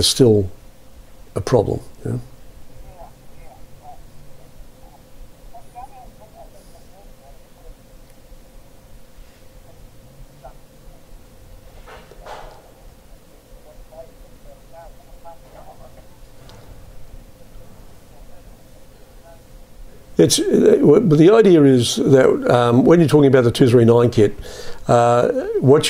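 A middle-aged man speaks calmly into a phone close by.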